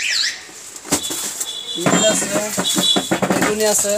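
Hands rub and squeak against a foam box.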